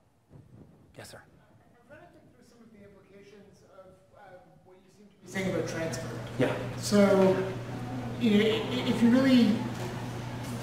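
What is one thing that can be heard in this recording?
A man speaks calmly to an audience through a microphone in a large room.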